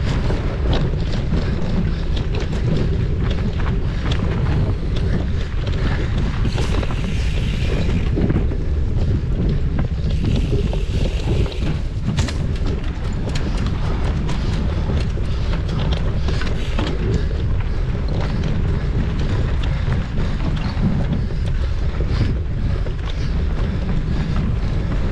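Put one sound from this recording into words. Bicycle tyres rattle and crunch over a bumpy dirt trail.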